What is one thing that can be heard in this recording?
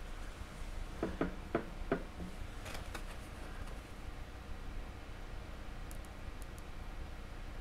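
A hand tool scrapes and taps against a hard plastic model.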